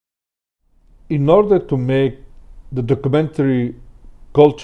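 An older man speaks calmly into a close microphone, as in an online call.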